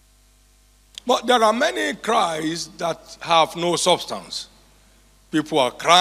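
A man speaks with emphasis into a microphone, heard through loudspeakers.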